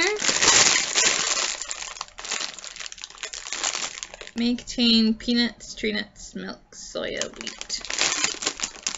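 A plastic snack bag crinkles and rustles loudly close by.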